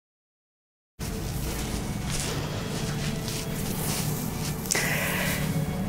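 Flower stems rustle as a bouquet is moved.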